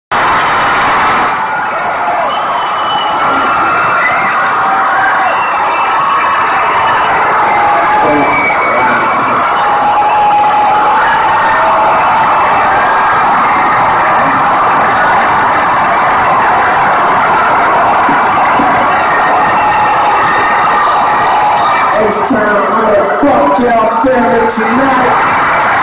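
Loud live music plays through large speakers, distorted and booming.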